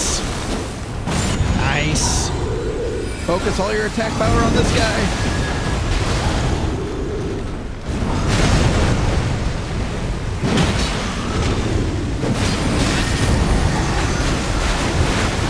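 Heavy blows and crashes of a battle boom and clang.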